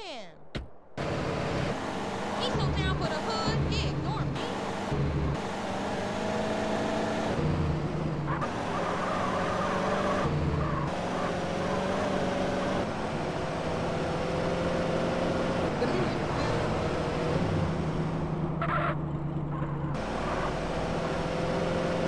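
A car engine starts and revs as the car drives off.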